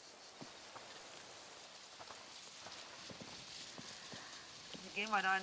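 Footsteps tread softly on the ground.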